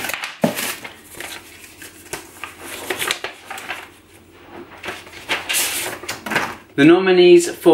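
Paper crinkles as an envelope is handled.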